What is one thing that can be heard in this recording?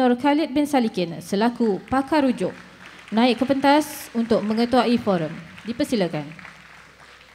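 A young woman speaks calmly into a microphone in a large echoing hall.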